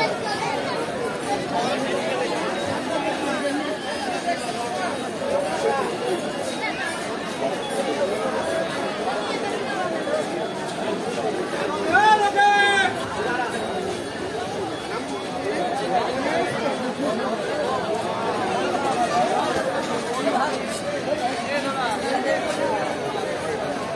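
A large crowd of men and women chatters all around outdoors.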